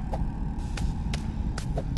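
Hands clank on a metal pole while climbing.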